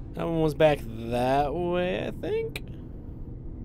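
A young man speaks loudly and with animation into a close microphone.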